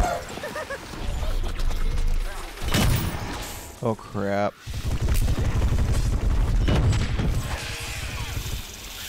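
Loud splatting blasts boom close by.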